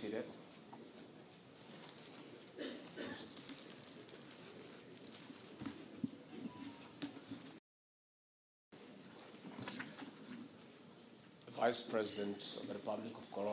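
A man speaks calmly and formally through a microphone in a large echoing hall.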